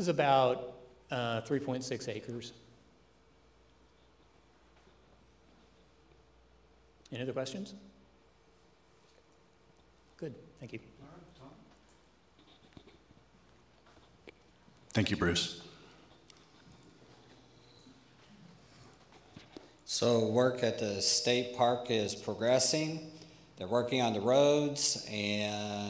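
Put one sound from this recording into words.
A man speaks through a microphone in a room, pausing often.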